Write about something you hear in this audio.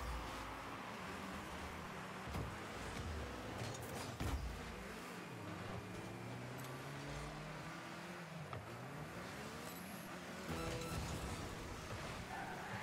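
A car engine hums and revs, rising and falling in pitch.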